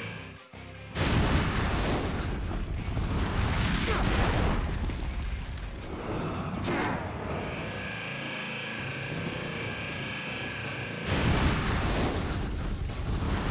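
Loud magical blasts roar and rumble.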